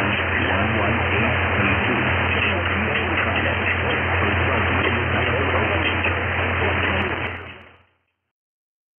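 Loud radio static hisses and crackles, then cuts out.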